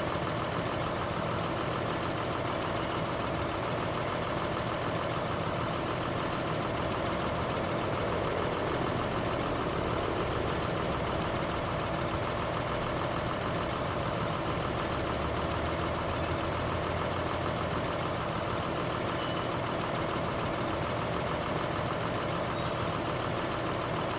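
A tractor engine idles with a steady rumble.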